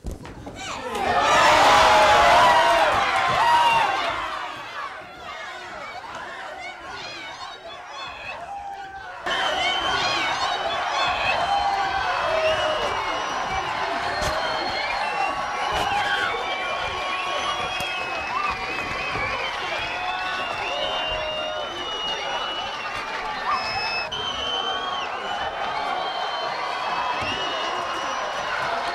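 A crowd cheers and shouts loudly in an echoing room.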